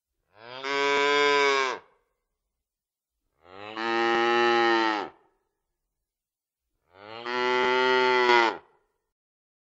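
A cow moos loudly.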